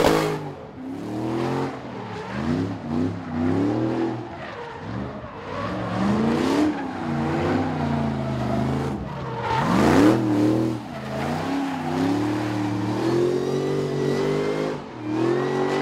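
Tyres screech and squeal on tarmac.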